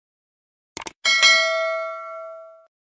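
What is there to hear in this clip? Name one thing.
A small bell chimes and slowly rings out.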